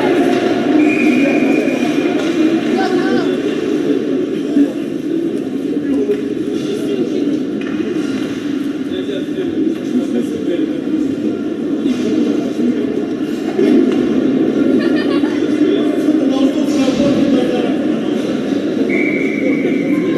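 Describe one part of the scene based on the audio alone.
A crowd of spectators murmurs and chatters in a large echoing arena.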